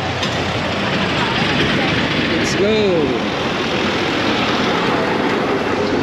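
A jeepney engine runs close by as it pulls up.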